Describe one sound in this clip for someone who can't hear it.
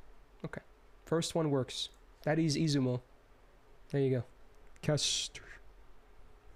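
A man speaks with animation, close to a microphone, in short bursts.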